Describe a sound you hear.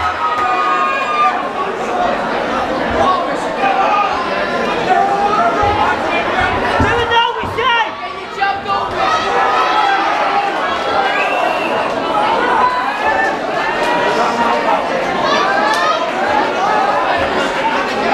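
A large indoor crowd cheers and shouts throughout.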